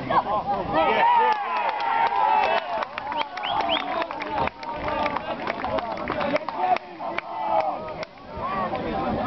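A small crowd of spectators cheers and claps after a goal.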